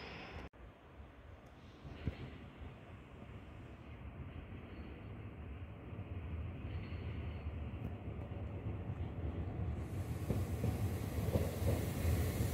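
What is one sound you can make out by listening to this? A passenger train approaches with a growing rumble.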